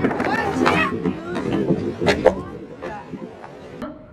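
A skateboard clatters onto concrete.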